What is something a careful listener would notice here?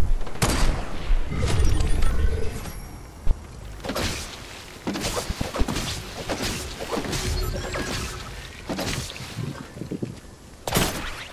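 Footsteps patter quickly on stone as a game character runs.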